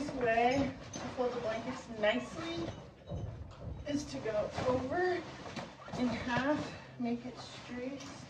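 A heavy fabric blanket rustles and flaps as it is shaken out.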